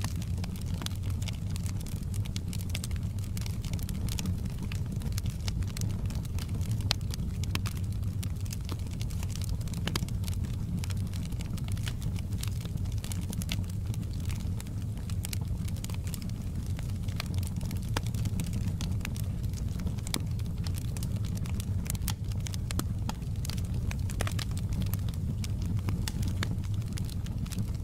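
A fire roars with a low steady rumble.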